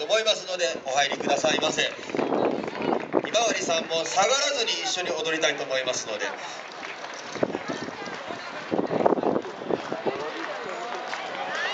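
A group of young children sing and chant together.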